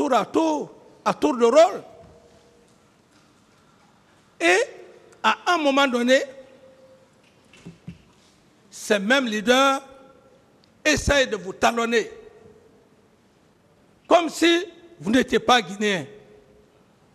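A middle-aged man speaks emphatically into a microphone in short bursts with pauses.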